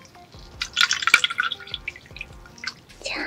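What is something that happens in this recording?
Water trickles and splashes into a bowl close up.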